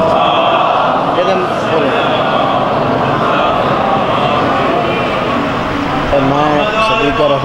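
A man speaks with animation into a microphone, heard through loudspeakers in a reverberant space.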